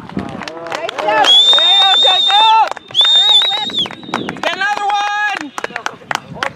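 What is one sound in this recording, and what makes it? A crowd of spectators cheers and screams loudly outdoors.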